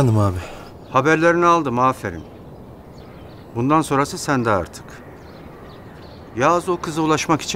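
An older man speaks calmly and firmly on a phone.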